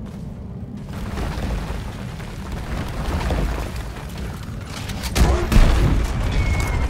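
Rock and debris crumble with a deep rumble.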